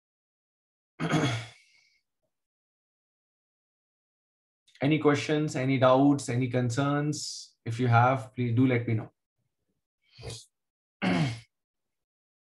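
A man speaks calmly through a microphone in short bursts, with pauses.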